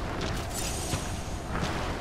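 Magic crackles and fizzes.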